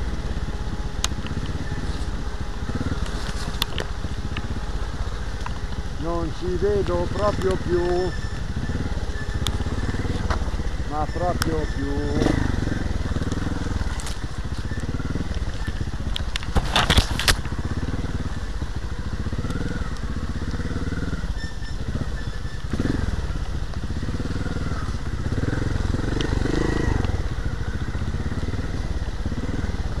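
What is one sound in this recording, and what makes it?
A motorbike engine rumbles and revs unevenly while riding.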